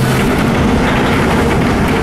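A car drives past.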